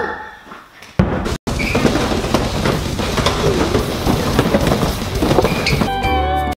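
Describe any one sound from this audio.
Cardboard boxes tumble and thud to the floor.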